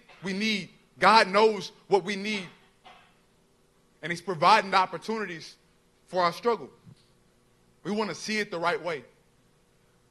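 A young man speaks calmly into a microphone over loudspeakers.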